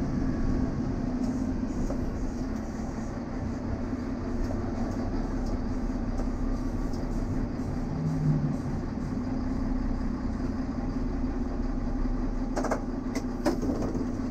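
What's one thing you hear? Train wheels rumble on the rails as the diesel railcar slows into a stop.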